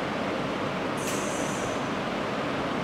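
A steam iron gives a short hiss.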